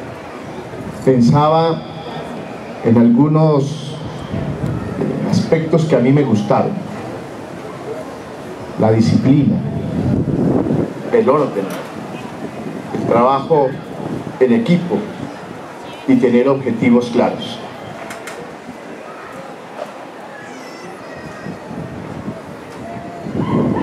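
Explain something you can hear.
A man speaks with emphasis into a microphone, heard through loudspeakers outdoors in phrases with pauses.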